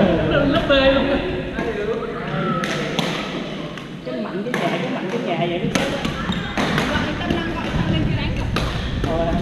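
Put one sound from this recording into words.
Shuttlecocks are struck with rackets, with sharp pops.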